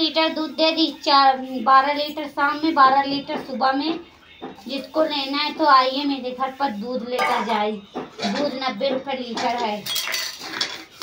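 A woman speaks in a sing-song voice close by.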